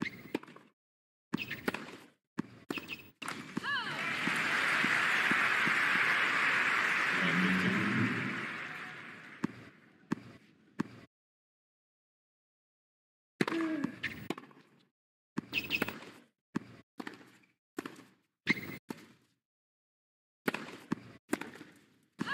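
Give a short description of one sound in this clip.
A tennis ball is struck with sharp pops of a racket.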